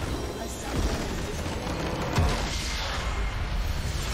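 A computer game structure explodes with a booming blast.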